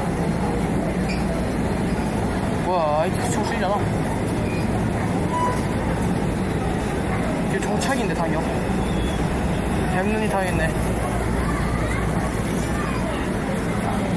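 An escalator hums and rumbles steadily as it moves.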